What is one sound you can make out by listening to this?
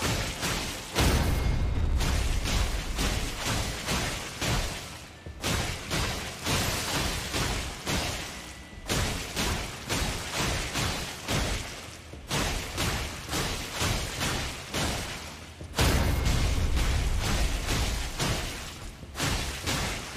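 A huge creature slams down with deep, rumbling crashes.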